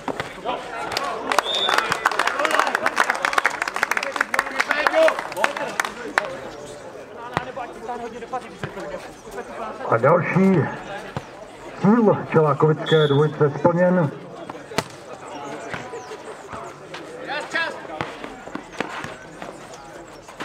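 A ball thuds off players' feet and bounces on the court.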